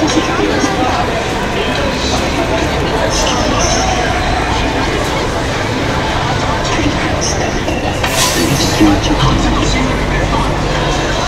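A crowd murmurs and chatters all around, outdoors.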